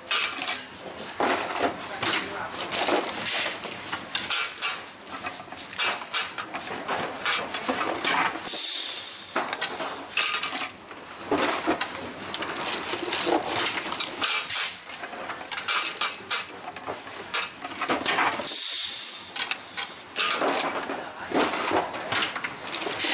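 Metal rods clatter and rattle.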